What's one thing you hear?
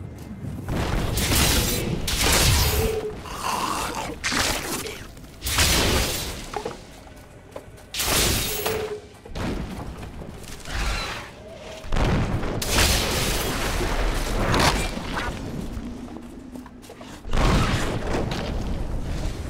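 Game spells burst and crackle in bursts.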